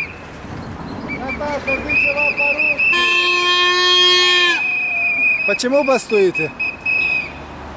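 A man speaks through a loudspeaker.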